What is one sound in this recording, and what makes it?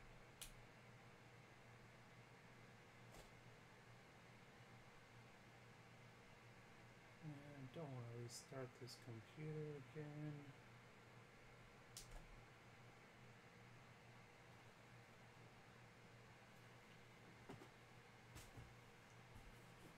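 Hands handle packs of trading cards with soft clicks and rustles.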